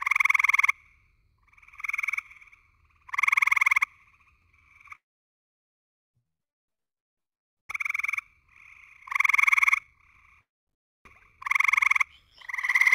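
A recorded tree frog gives loud, pulsing trills again and again, heard through an online call.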